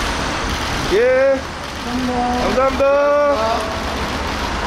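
A young woman calls out a brief greeting nearby.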